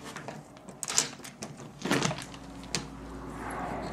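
A door latch clicks and a door swings open.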